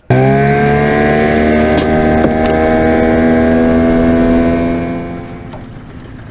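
An outboard motor runs and slows down, then cuts off.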